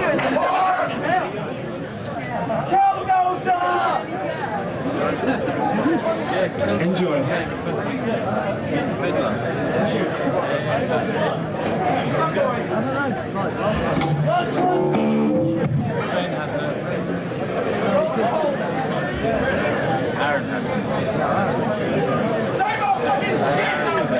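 A man sings into a microphone through loudspeakers.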